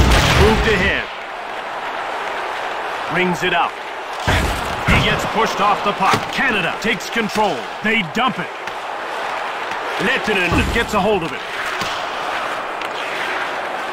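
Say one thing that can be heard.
A large crowd roars steadily in an arena.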